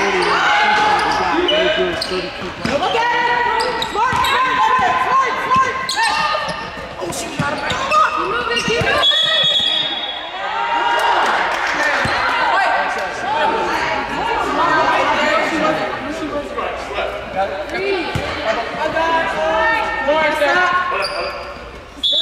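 Sneakers squeak on a hardwood court in a large echoing gym.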